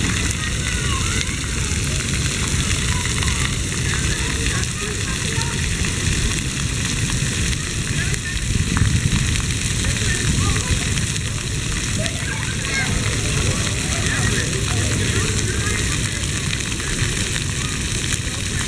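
Children shout and chatter in the distance.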